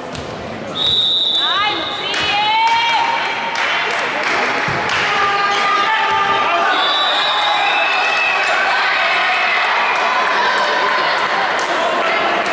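Young women shout and cheer excitedly.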